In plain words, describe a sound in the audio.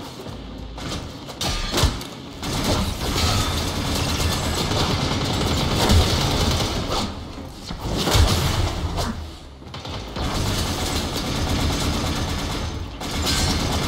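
A staff whooshes through the air and strikes with heavy thuds.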